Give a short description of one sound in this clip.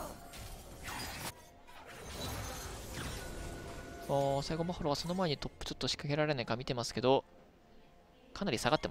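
Video game sound effects whoosh and clash.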